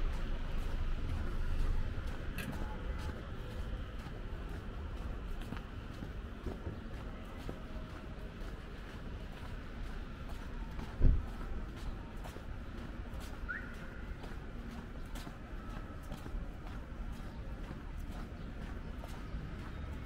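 Light traffic hums steadily on a wet street outdoors.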